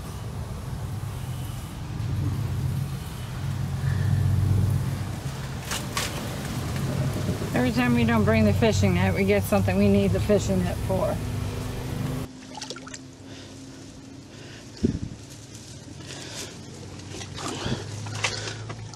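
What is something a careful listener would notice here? Leaves and branches rustle as a person pushes through undergrowth.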